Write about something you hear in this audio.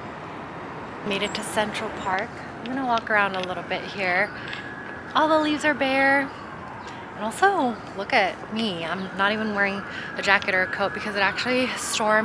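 A young woman talks with animation close to a microphone, outdoors.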